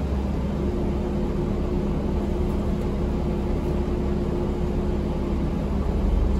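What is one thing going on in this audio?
A bus rattles and rumbles as it drives along.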